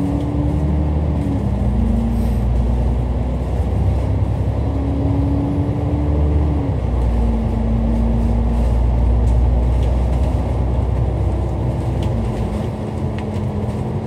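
Traffic hums along a busy road outdoors.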